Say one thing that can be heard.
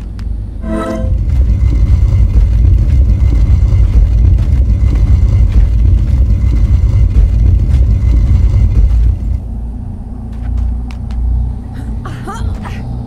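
A heavy wooden cage scrapes and rumbles as it is pushed along.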